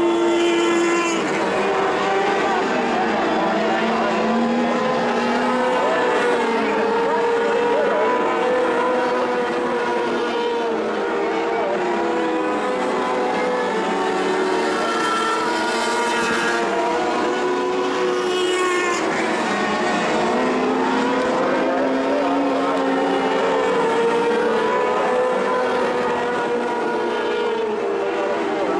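Several race car engines roar and rev loudly, rising and falling in pitch as they pass.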